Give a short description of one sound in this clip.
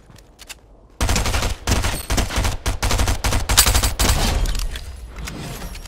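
Rapid bursts of gunfire ring out close by.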